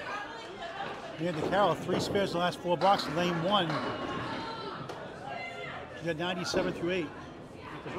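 A bowling ball rolls and rumbles down a wooden lane.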